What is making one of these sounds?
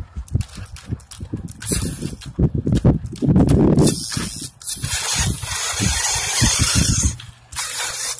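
A small electric motor whirs as a toy truck climbs over bumpy ground.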